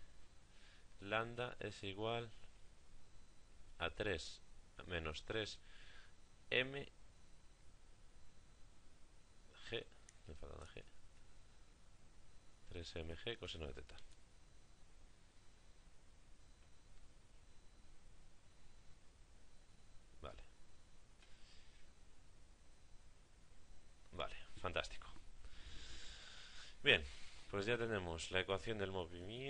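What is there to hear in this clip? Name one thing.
A young man speaks calmly into a close microphone, pausing between phrases.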